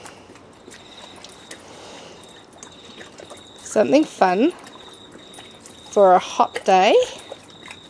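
Dogs lap water from a shallow pool.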